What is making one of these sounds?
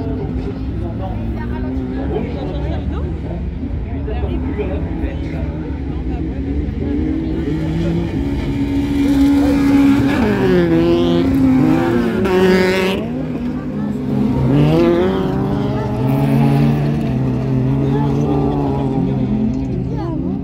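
Rally car engines roar and rev, rising and falling in pitch as cars race past.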